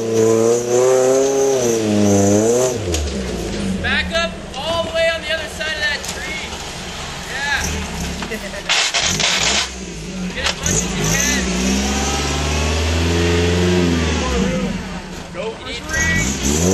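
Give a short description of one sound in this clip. An off-road truck's engine revs hard, rising and falling in pitch.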